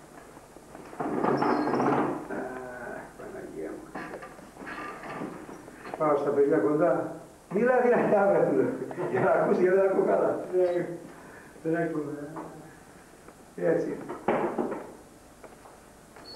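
An elderly man speaks calmly and steadily.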